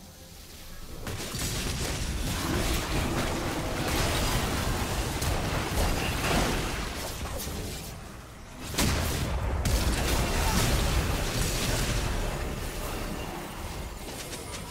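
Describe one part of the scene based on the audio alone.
Magic blasts and weapon hits crackle and boom in a fast video game battle.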